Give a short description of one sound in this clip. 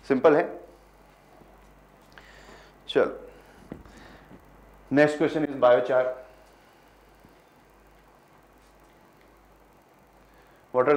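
A young man speaks through a clip-on microphone in short bursts, with pauses between.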